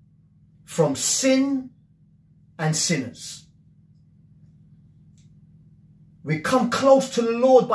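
A middle-aged man speaks with animation close to a microphone, in short bursts with pauses.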